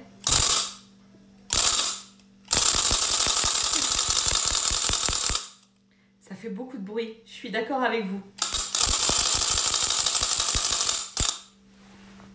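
A wooden ratchet noisemaker rattles loudly in fast clattering bursts.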